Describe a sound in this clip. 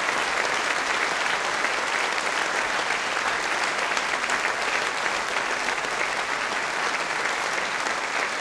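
A large audience applauds steadily in a big echoing hall.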